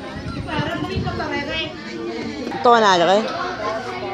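Women chat nearby.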